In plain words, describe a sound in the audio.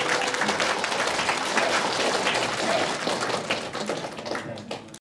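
A large crowd applauds in a big echoing hall, the clapping fading toward the end.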